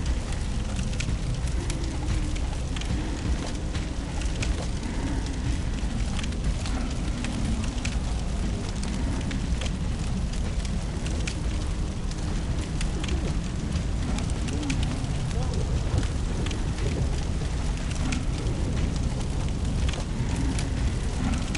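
A torch flame crackles softly.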